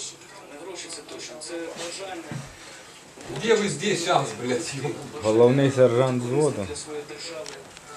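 A young man speaks calmly through a television loudspeaker.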